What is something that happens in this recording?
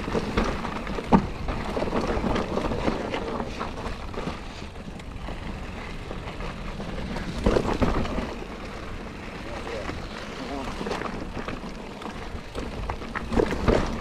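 Bicycle tyres crunch and rattle over rocky dirt.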